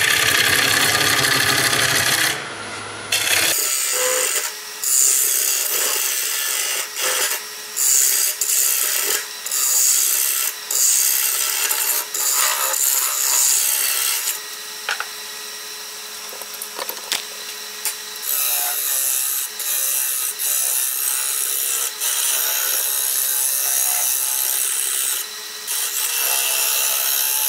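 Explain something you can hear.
A chisel scrapes and hisses against spinning wood, in repeated bursts.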